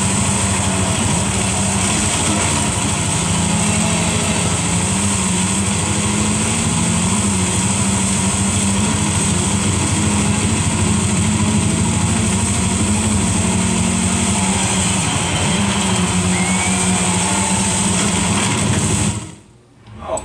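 A racing car engine roars steadily through a television speaker, rising and falling with the gears.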